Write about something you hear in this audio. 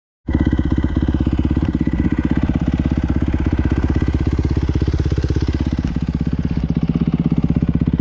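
A dirt bike engine idles close by with a rapid, steady low putter.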